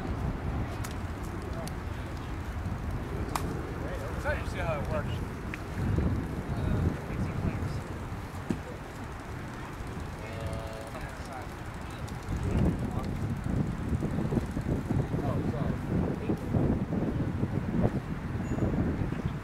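Wind rumbles and gusts across an open field.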